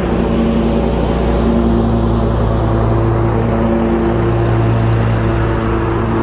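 A lawn mower engine drones steadily, drawing closer.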